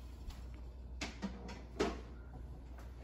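Dishes clink and knock against a counter.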